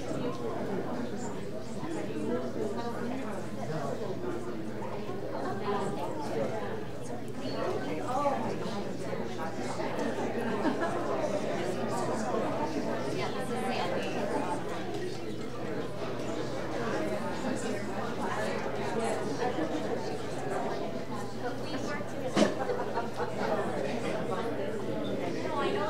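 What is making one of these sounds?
A crowd of adults chatters in a large echoing hall.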